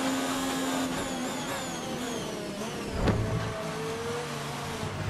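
A racing car engine whines past close by.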